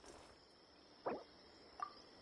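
A soft game menu chime sounds as a menu opens.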